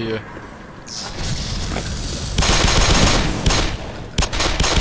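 Gunshots ring out in a loud burst.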